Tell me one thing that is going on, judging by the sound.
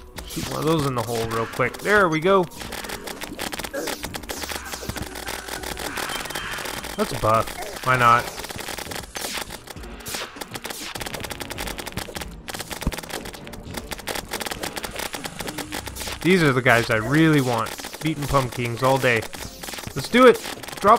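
Rapid video game magic blasts fire and strike over and over.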